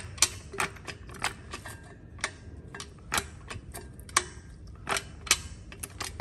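Metal engine parts click and clack sharply as hands rock and turn an engine.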